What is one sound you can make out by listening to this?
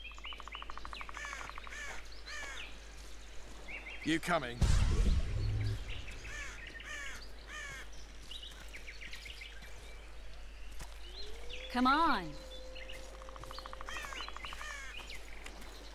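Footsteps crunch softly on a path.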